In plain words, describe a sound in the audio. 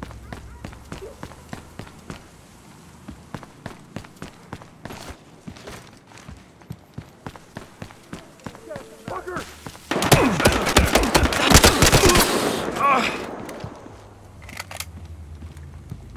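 Footsteps patter quickly and steadily.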